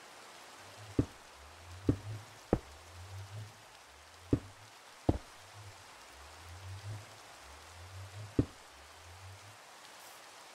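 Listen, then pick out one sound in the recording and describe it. Blocks knock softly into place one after another.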